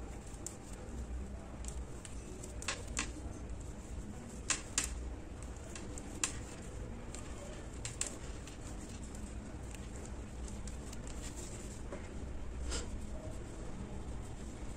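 A plastic crochet hook clicks faintly against yarn.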